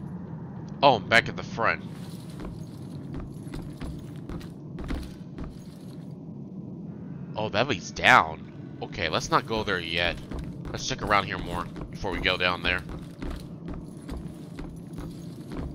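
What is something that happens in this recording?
Footsteps creak slowly across wooden floorboards.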